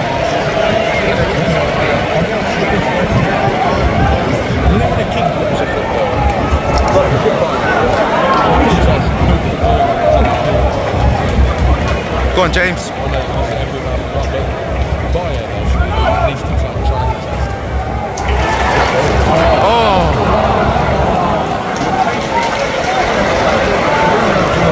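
A large stadium crowd chants and sings loudly all around.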